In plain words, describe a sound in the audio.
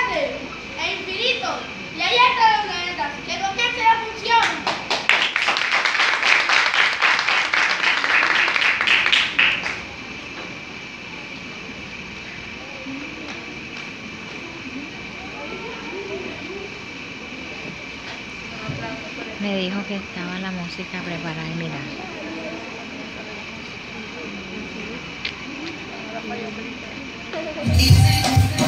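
Children speak out loud on stage.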